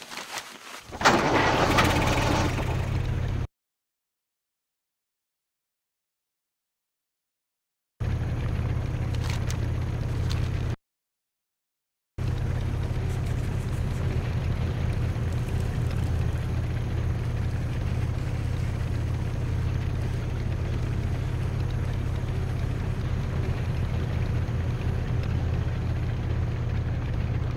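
A small motor vehicle's engine drones steadily as it drives along.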